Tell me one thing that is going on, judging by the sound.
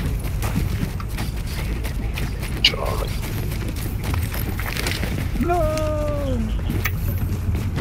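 Footsteps crunch on snow at a run.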